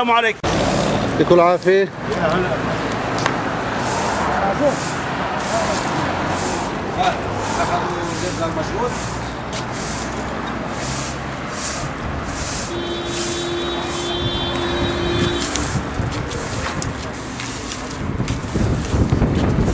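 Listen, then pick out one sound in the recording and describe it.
A broom scrapes and sweeps over paving stones.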